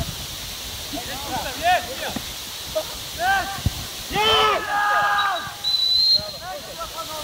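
Men shout to each other outdoors across a playing field.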